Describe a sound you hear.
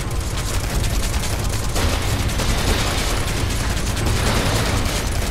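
A gun fires in rapid, continuous bursts.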